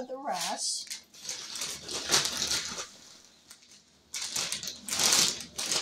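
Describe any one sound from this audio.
A plastic package crinkles and rustles close by.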